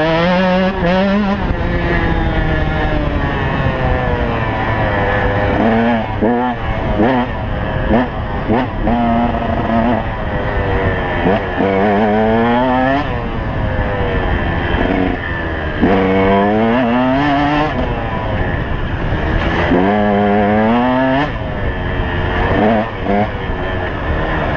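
Wind rushes past the rider.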